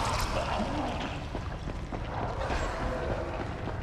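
Footsteps echo slowly through a long tunnel.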